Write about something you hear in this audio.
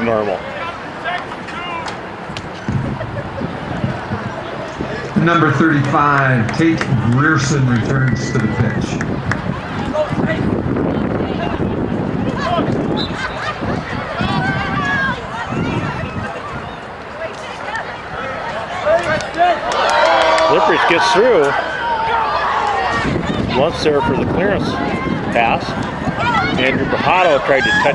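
Players shout to each other outdoors across an open field.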